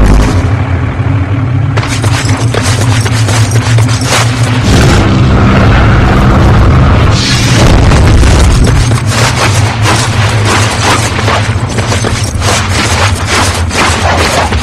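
Footsteps thud and scrape over rubble.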